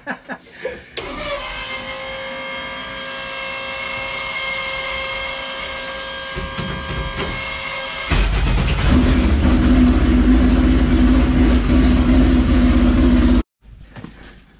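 A car engine runs loudly nearby, then cuts out.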